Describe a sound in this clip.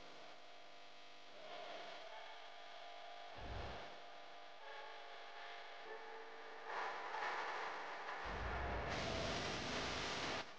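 A young woman sings.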